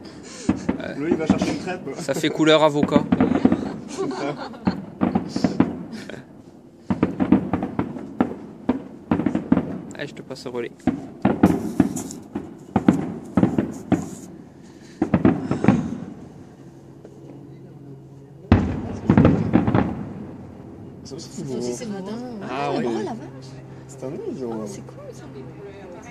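Fireworks boom and crackle in the distance, one burst after another.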